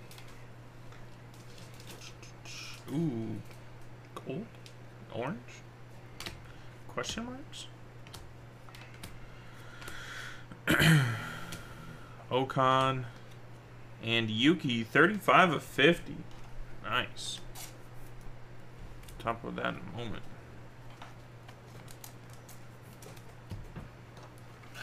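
Trading cards rustle and slide as they are flipped through.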